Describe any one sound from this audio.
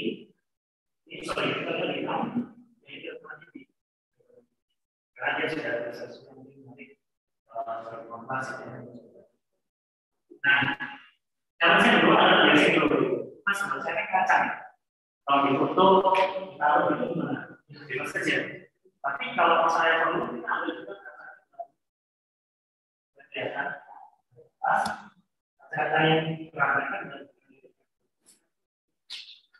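A man speaks calmly into a microphone over an online call, pausing often.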